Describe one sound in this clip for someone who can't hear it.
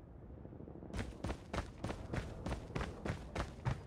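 Footsteps patter quickly and evenly on a hard floor.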